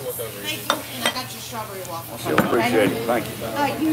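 A plate is set down on a table with a clatter.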